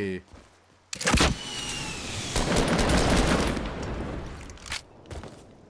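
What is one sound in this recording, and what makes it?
Loud gunshots blast.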